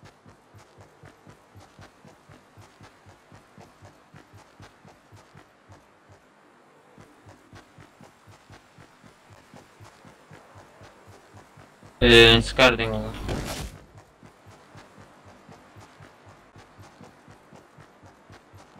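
Quick running footsteps thud on grass.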